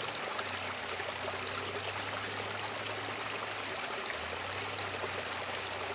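Shallow water trickles over stones.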